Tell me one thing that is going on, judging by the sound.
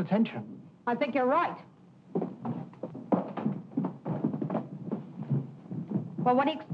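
A woman speaks quickly and with animation.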